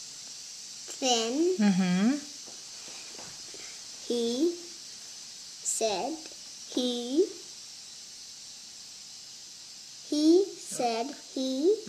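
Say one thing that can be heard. A young child reads aloud slowly, word by word, close by.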